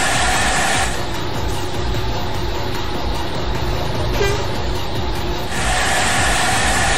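A bus engine hums steadily as it drives along a road.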